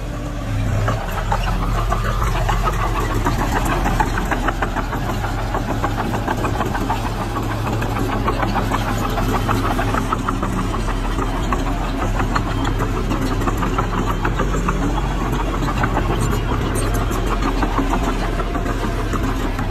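A bulldozer blade scrapes and pushes loose earth.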